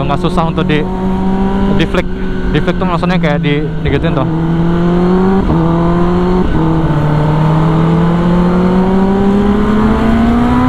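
A motorcycle engine hums steadily and its pitch slowly rises as it speeds up.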